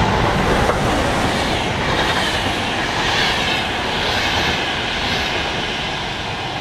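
Train wheels clatter and squeal on the rails.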